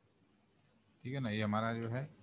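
A young man speaks into a microphone.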